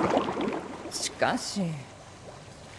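A woman speaks softly.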